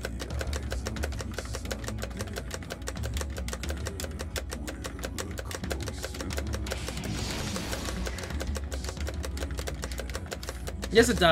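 Heavy metal music plays loudly with fast pounding drums.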